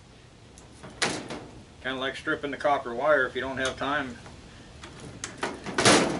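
Plastic and metal parts clatter and knock under a man's hands.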